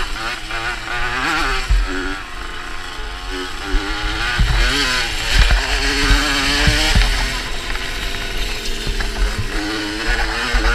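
Knobby tyres crunch and bump over loose dirt.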